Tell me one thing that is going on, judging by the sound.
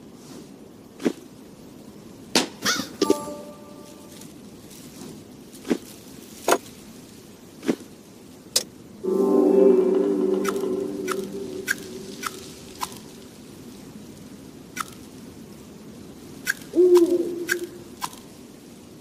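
Short clicking effects sound as game pieces are selected and moved.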